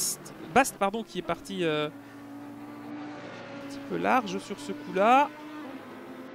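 A racing car's engine crackles and pops sharply on downshifts.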